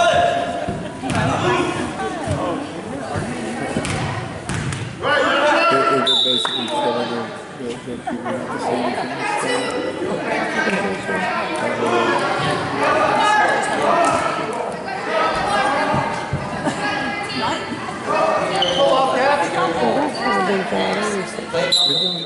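Men and women talk and call out nearby in an echoing hall.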